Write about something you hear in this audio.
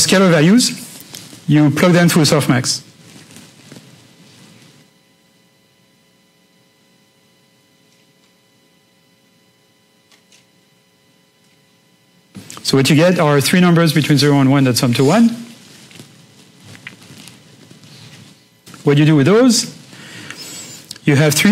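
A man lectures through a microphone in a room with some echo, pausing now and then.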